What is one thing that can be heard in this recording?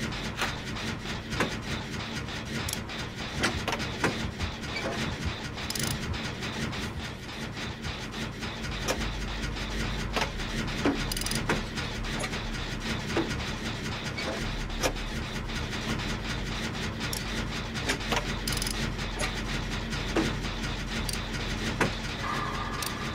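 A machine rattles and clanks with sharp metallic clicks.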